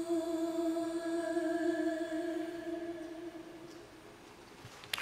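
A young man sings a long, held note through a loudspeaker, slowly fading.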